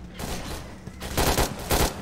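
A rifle fires a rapid burst of shots.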